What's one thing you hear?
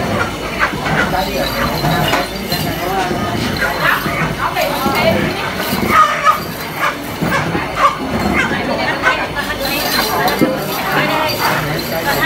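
Elderly men and women chat calmly nearby outdoors.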